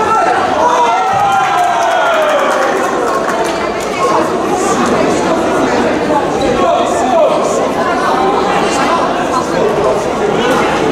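A group of children chatter and shout in a large echoing hall.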